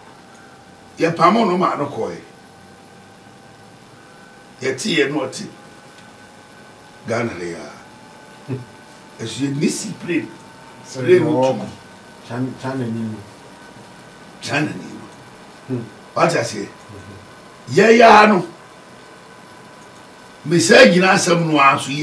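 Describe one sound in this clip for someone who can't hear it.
An elderly man speaks with animation in short bursts, close to a microphone.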